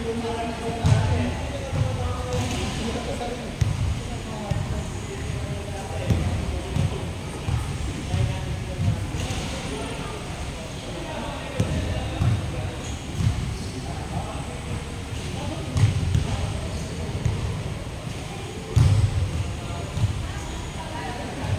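Basketballs bounce on a wooden floor in a large echoing hall.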